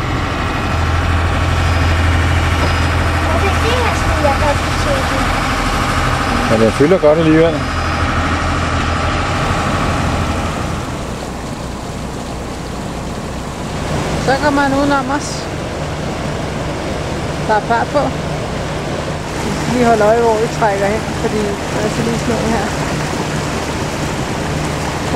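Water splashes and laps against a hull.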